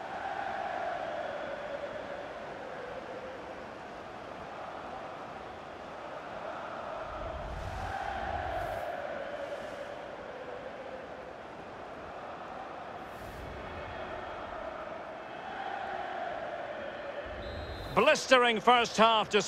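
A large stadium crowd cheers and chants in a steady roar.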